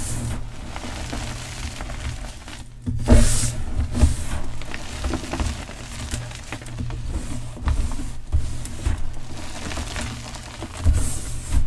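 Hands squeeze and crumble dry powdery chalk close up.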